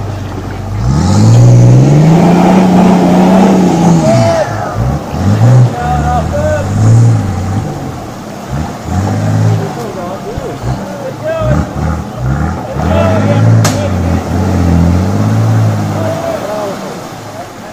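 A car engine revs hard as a vehicle drives through water.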